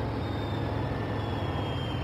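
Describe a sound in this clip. A diesel engine idles with a low rumble.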